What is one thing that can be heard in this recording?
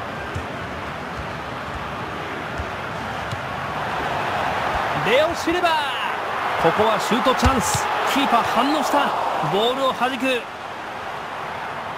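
A large stadium crowd roars steadily and swells louder as the attack builds.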